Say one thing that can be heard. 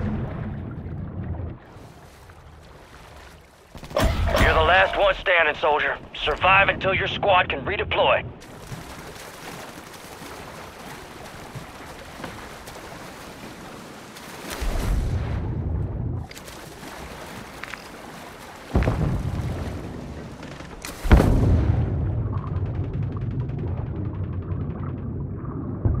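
Bubbles gurgle and rumble deep underwater.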